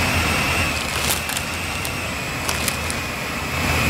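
Newspaper pages rustle and crinkle.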